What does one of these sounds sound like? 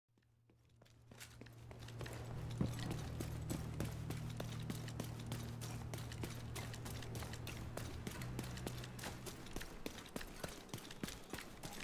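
Footsteps tread steadily on hard ground.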